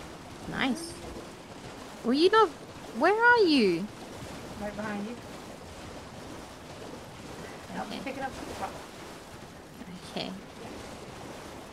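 A horse gallops and splashes through shallow water.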